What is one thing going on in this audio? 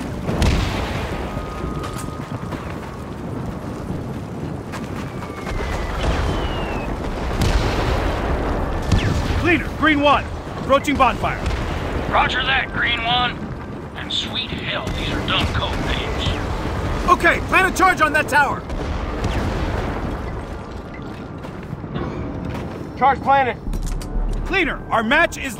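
Heavy boots crunch and clank as a soldier walks over snow and metal.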